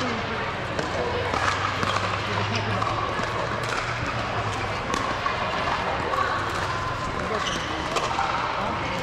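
Paddles strike a plastic ball with sharp pops in a large echoing hall.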